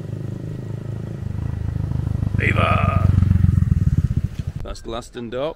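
A motorcycle engine roars as it passes close by.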